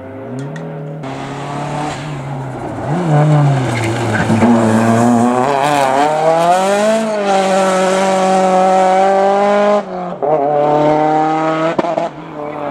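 A second rally car engine revs loudly and roars away.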